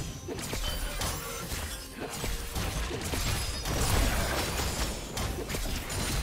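Game spells crackle and clash in a fight.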